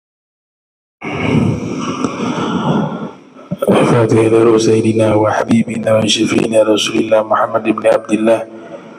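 A man recites in a melodic chanting voice through a microphone.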